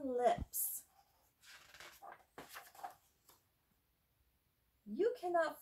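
A woman reads aloud with animation, close by.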